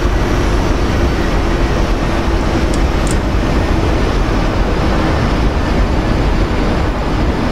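A jet airliner's engines roar loudly and steadily as it takes off.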